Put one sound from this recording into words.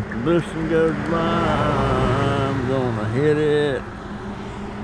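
A pickup truck's engine hums as it drives past.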